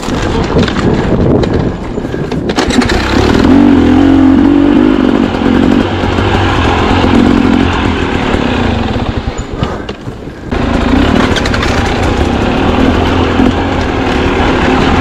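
Tyres crunch and thump over roots and dirt.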